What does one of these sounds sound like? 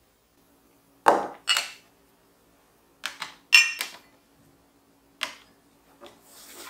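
Mugs and glasses clink as they are set on a tray.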